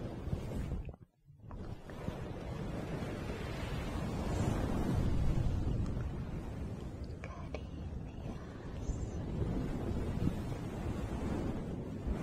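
A young woman whispers close to the microphone.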